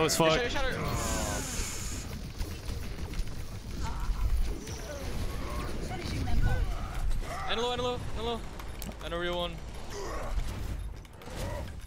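Gunfire and explosions crackle from a video game.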